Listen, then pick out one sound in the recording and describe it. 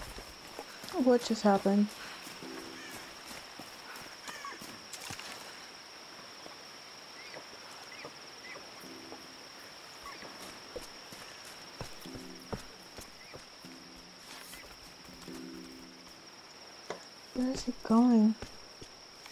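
A deer cries out in distress.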